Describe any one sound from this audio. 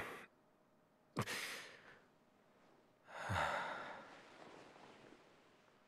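A young man speaks quietly and wearily, close by.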